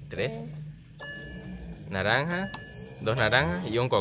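An arcade machine plays electronic beeps and tones.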